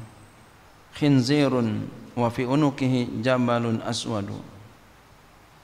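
A man speaks slowly into a microphone.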